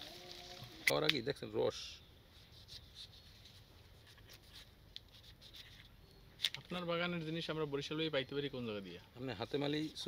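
A knife slices into firm fruit.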